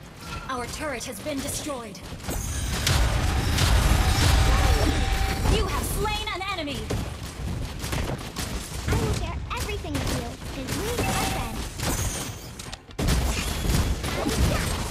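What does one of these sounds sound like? A game character's weapon clashes and slashes.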